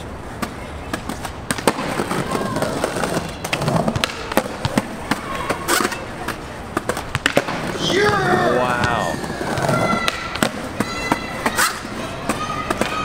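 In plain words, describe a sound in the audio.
Skateboard wheels roll on concrete.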